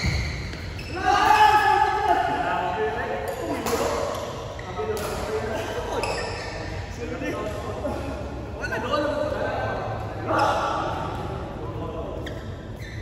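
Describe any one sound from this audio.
Young men talk and call out nearby.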